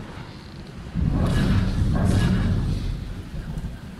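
A deep ghostly whoosh swells and fades.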